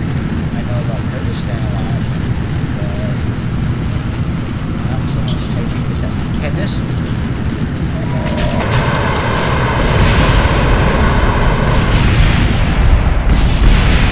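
Rocket engines roar steadily.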